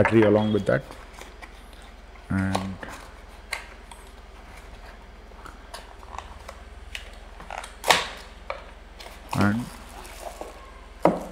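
A cardboard box rustles and scrapes as it is opened and handled.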